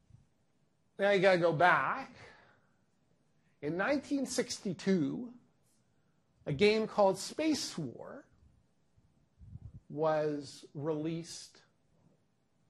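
A middle-aged man lectures calmly through a microphone, in bursts with pauses.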